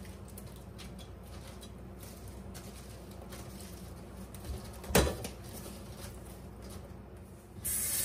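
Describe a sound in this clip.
Flowers rustle softly as a hand drops them into a glass bowl.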